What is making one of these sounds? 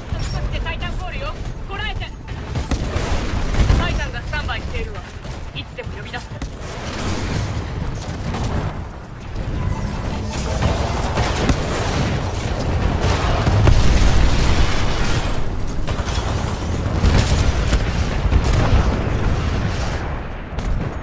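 Heavy gunfire blasts rapidly.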